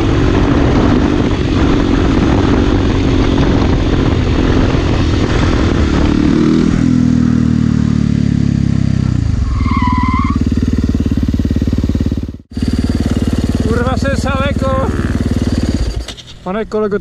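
A motorcycle engine roars loudly at close range.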